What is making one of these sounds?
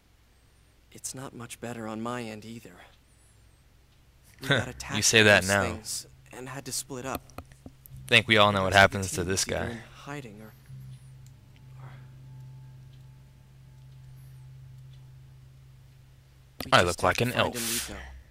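A young man speaks calmly and close by.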